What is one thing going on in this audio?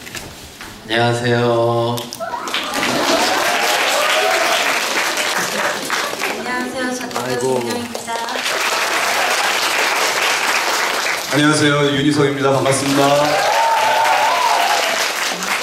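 A young man speaks through a microphone over a loudspeaker in a large hall.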